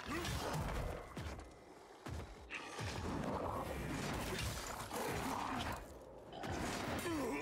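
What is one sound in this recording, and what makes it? A heavy blade clangs and slashes against a monster.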